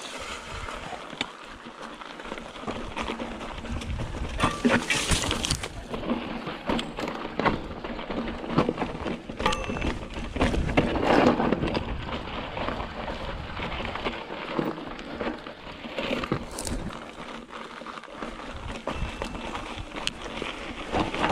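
A bicycle's frame and chain rattle over bumps.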